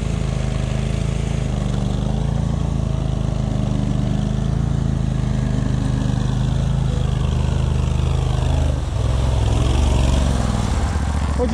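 Water splashes and churns around a vehicle's wheels.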